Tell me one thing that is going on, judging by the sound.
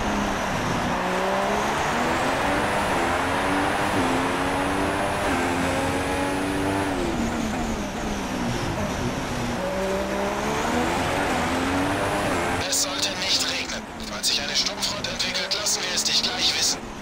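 A Formula One car engine screams at high revs, shifting up and down through the gears.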